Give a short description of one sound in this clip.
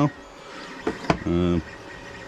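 A hard plastic mask is set down with a light knock.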